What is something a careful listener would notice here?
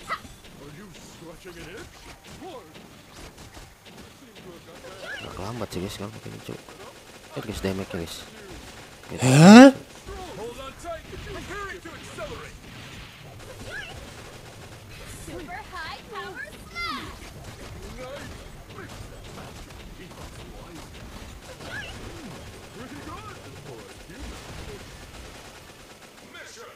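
Game gunfire and explosions crackle and boom.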